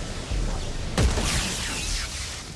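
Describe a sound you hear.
A gun fires sharp, loud shots.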